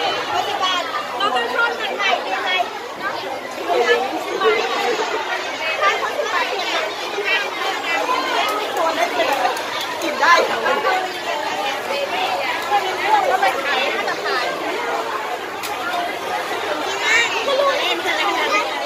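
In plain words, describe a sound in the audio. A crowd of children and adults chatters all around, close by.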